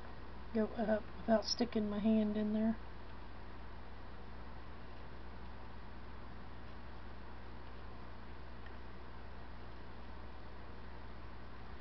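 A small brush lightly strokes a painted surface.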